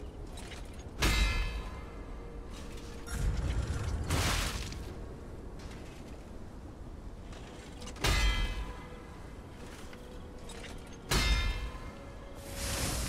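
Heavy blades clash and strike with sharp metallic hits.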